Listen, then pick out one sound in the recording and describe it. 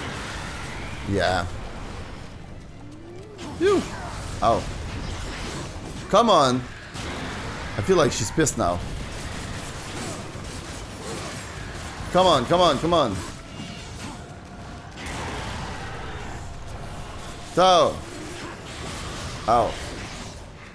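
A huge creature roars loudly in bursts.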